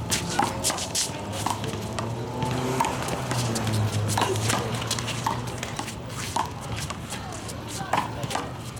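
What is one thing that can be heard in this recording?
A rubber ball smacks against a wall and the ground again and again.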